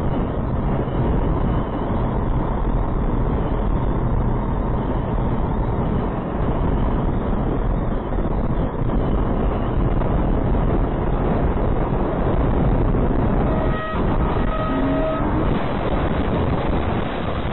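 Strong wind buffets a truck loudly.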